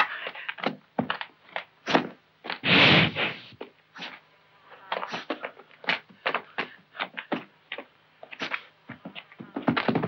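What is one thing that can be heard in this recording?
A bull's hooves thud and scrape on dry dirt.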